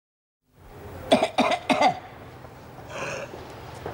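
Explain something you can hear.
An elderly woman cries out in distress.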